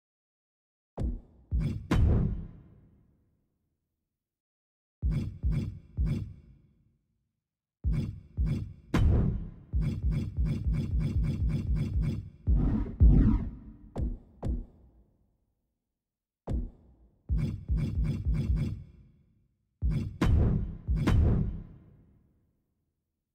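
Short electronic menu clicks sound in quick bursts.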